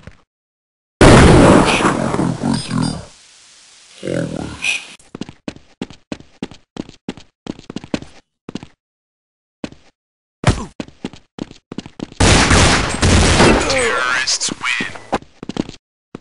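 A rifle fires loud bursts of gunshots.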